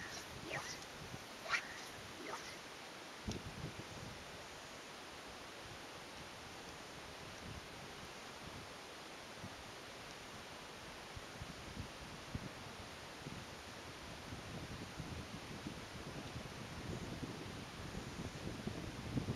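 Wind blows across the microphone outdoors in gusts.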